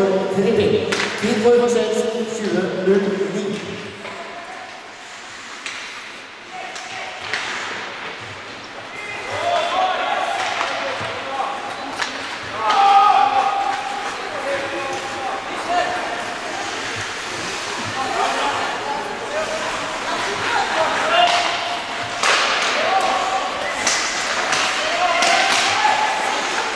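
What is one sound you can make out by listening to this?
Ice hockey sticks clack against a puck and the ice.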